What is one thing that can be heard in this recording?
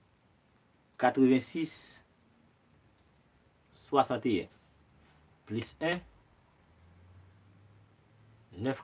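A young man speaks with animation close by, in short bursts with pauses.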